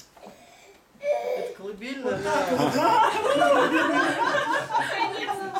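A man laughs heartily nearby.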